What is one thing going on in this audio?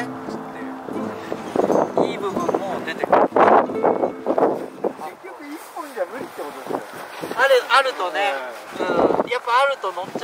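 A young man talks casually outdoors.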